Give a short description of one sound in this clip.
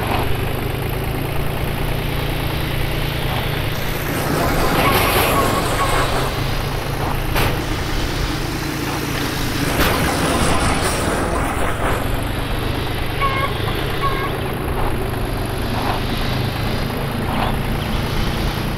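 A tractor engine rumbles steadily at speed.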